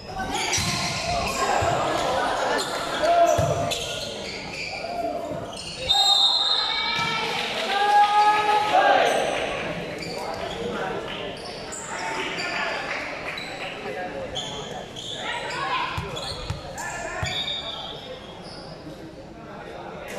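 A crowd of young players and spectators shouts and cheers in a large echoing hall.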